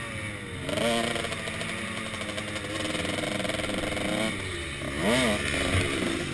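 A dirt bike engine revs up and down loudly, rising and falling in pitch.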